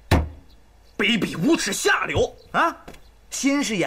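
A young woman speaks angrily and loudly nearby.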